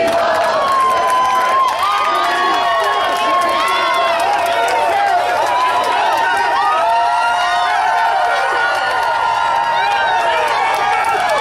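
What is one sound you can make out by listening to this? Fans clap and slap hands with a passing man.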